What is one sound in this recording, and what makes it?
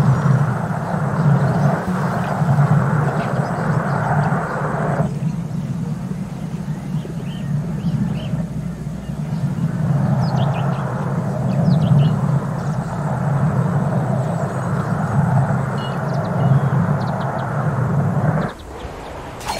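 A glass bowl rolls along a hard surface with a steady low rumble.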